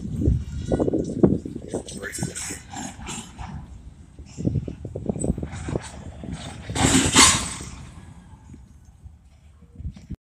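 A freight train rumbles and clatters past at a distance.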